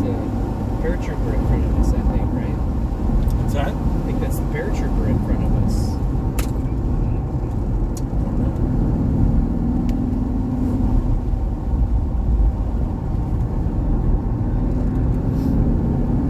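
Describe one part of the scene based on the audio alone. A sports car engine drones under steady throttle, heard from inside the cabin.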